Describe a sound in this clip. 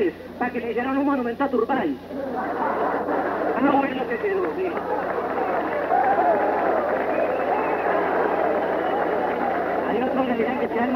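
A man speaks loudly and with animation into a microphone over a loudspeaker.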